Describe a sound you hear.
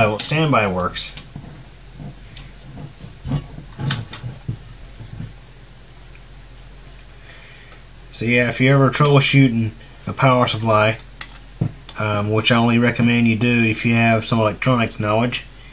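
Metal parts clink and rattle as they are handled up close.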